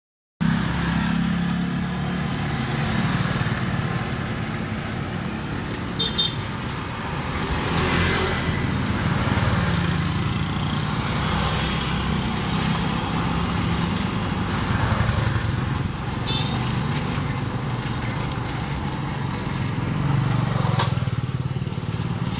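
A pedicab rolls along on asphalt.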